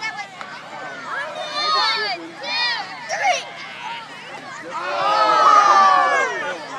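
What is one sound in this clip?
A crowd of children shouts and cheers outdoors.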